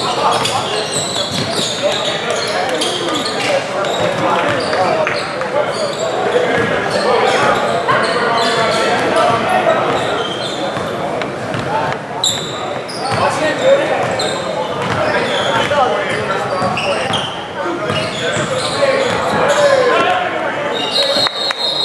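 A crowd of men and boys talk and shout in an echoing gym.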